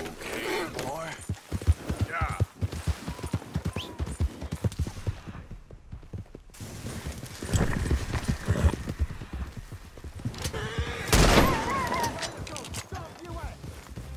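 Horse hooves thud on grass at a gallop.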